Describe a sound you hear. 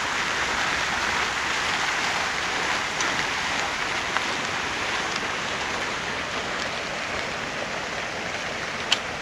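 A small child's shoes patter softly on paving stones.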